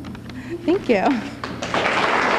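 A young woman speaks with a laugh into a microphone.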